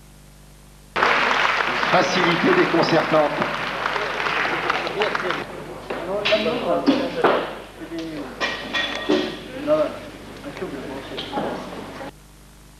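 Men talk nearby in a room.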